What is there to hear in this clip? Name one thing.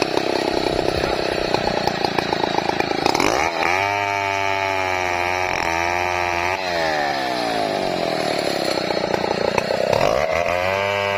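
A chainsaw engine idles and revs loudly, rising and falling in pitch.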